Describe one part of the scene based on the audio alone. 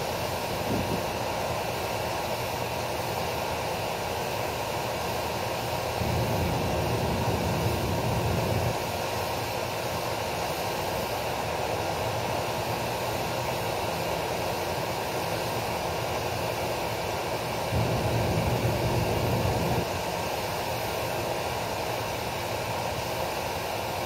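A pressure washer sprays water with a steady loud hiss.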